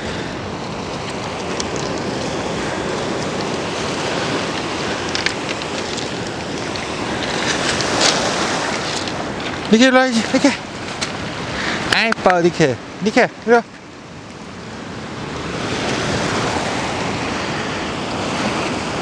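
Waves break and wash steadily onto the shore.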